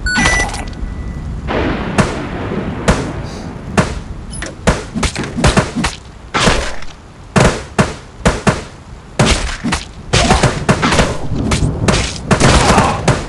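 Punches and kicks thud repeatedly in a fast brawl.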